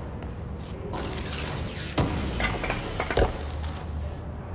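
Debris crashes and clatters as objects are smashed.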